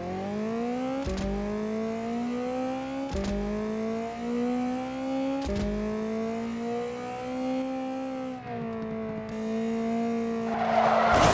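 A car engine revs hard, climbing in pitch and dropping with each gear change.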